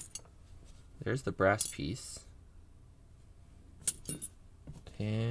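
Small metal lock parts click softly as they are handled.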